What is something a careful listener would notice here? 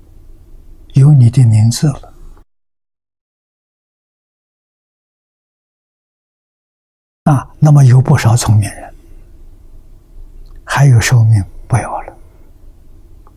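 An elderly man speaks calmly and warmly into a microphone.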